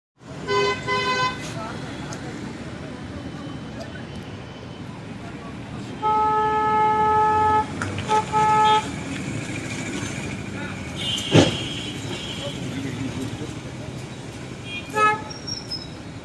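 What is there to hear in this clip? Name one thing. Vehicle horns honk in short and long blasts.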